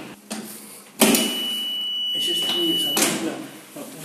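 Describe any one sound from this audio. An intercom buzzes with a steady high tone.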